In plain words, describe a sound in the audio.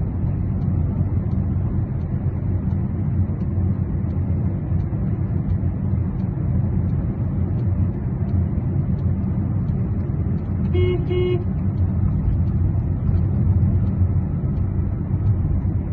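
A car's engine and tyres rumble steadily from inside the moving car.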